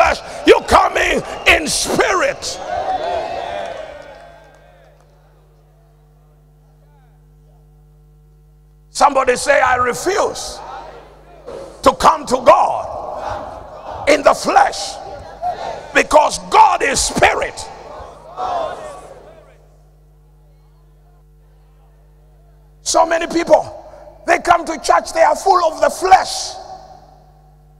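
A man preaches loudly and with animation through a microphone in an echoing hall.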